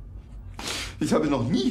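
A younger man speaks up in reply.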